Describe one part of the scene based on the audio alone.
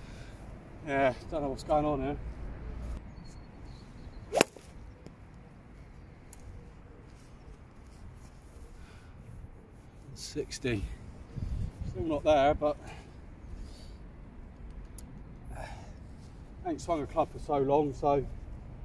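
A man speaks casually, close by.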